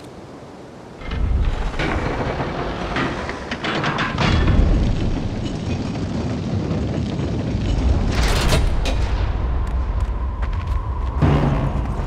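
A heavy platform rumbles as it moves.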